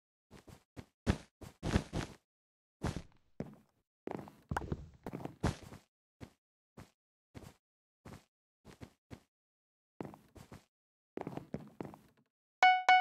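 Blocks thud softly as they are placed one after another.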